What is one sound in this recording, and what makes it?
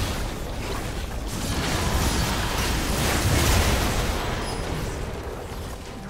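Game spells and hits crash and whoosh in a fierce fight.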